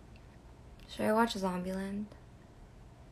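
A young woman speaks softly and close up, in a drawn-out, sing-song way.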